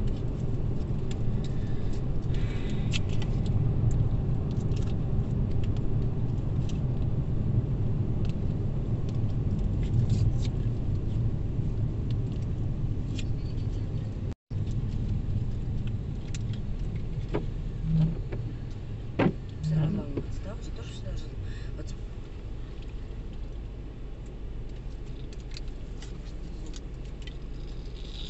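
A woman talks quietly in the back seat.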